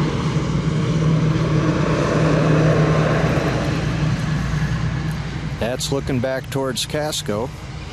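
A bus engine rumbles in the distance.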